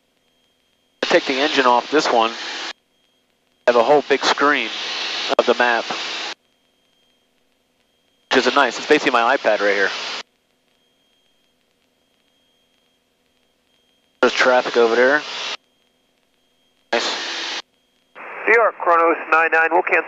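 A man speaks calmly through a headset intercom.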